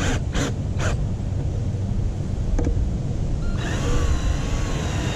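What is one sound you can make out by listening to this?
A cordless drill whirs as it drives in a screw.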